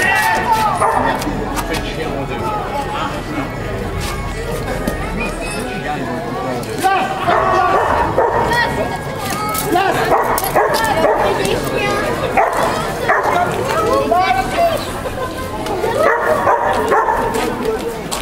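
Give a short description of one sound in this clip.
Children shout and call out excitedly.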